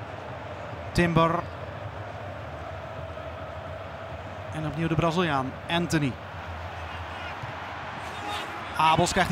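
Footballers shout to each other in a large, empty, echoing stadium.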